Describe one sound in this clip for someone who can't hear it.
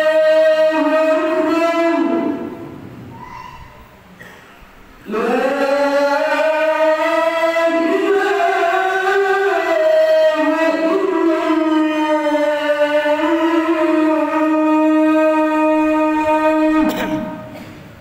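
A man chants a long, melodic call through a loudspeaker in an echoing hall.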